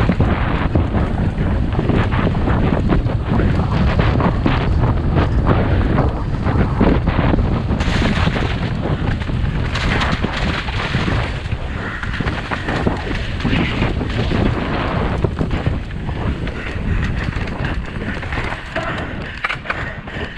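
Bicycle tyres rattle and crunch over a rocky dirt trail.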